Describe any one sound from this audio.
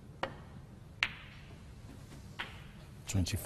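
Snooker balls knock together with sharp clicks.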